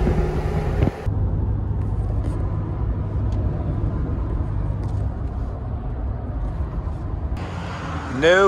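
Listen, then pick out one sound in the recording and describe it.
An engine hums steadily inside a moving car.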